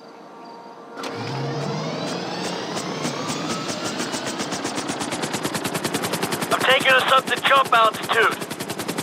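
A helicopter engine starts up and its rotor blades chop faster and faster.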